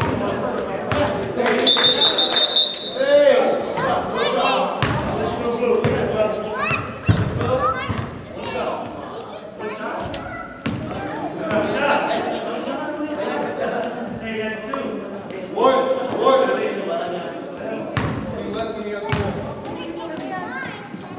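Several men talk and call out across a large echoing gym.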